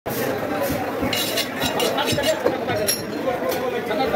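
Metal scrapes against metal as a knife is sharpened.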